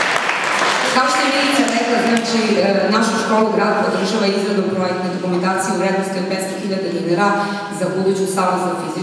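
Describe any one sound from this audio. A woman sings into a microphone, heard through loudspeakers.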